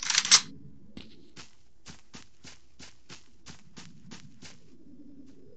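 Footsteps tread steadily on soft ground.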